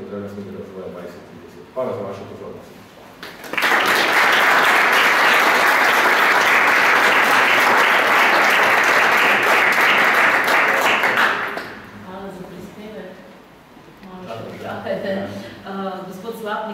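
A man speaks calmly into a microphone in a hall.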